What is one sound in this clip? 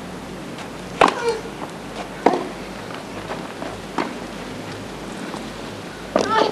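Tennis balls are struck sharply back and forth by rackets.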